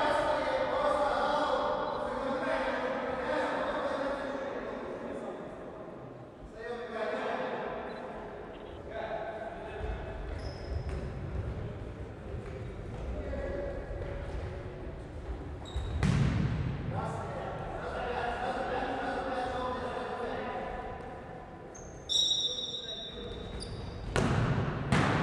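Young men shout to each other across a large echoing hall.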